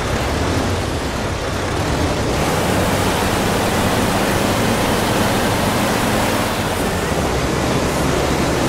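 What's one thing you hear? Tyres roll on the road with a rushing noise.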